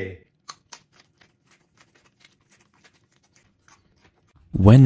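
A man bites and chews a banana.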